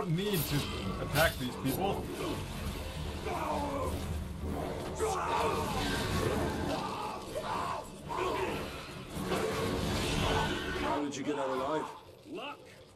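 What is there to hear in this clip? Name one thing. Blades clash and strike in a fierce fight.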